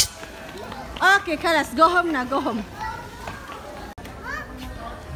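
A young child talks excitedly nearby.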